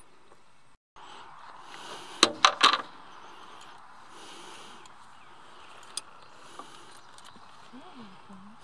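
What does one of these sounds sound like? Metal fittings clink and rattle.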